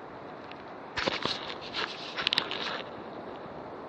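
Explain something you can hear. Twigs and branches snap and scrape close by.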